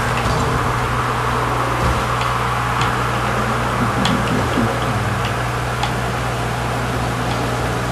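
Car engines hum and roar steadily.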